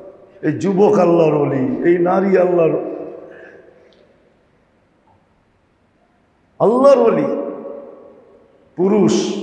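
An elderly man speaks with animation into a headset microphone, with pauses between phrases.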